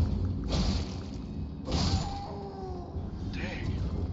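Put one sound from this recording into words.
A sword strikes a foe with heavy blows.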